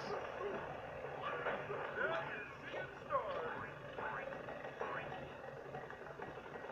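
Bouncy video game music plays through a small television speaker.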